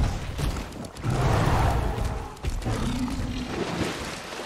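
Water splashes as a large beast drinks.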